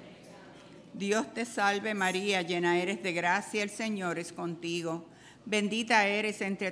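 A congregation sings a hymn together in a large echoing hall.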